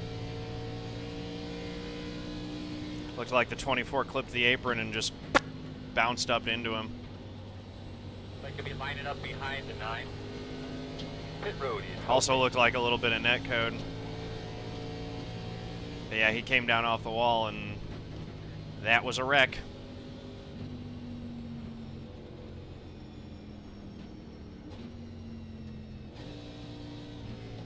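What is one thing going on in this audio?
A race car engine drones steadily.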